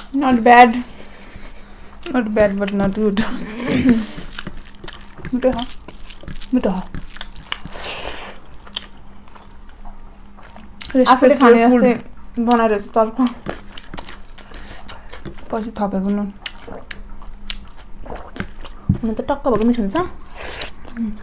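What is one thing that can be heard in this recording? Food squelches and smacks as young women chew close to a microphone.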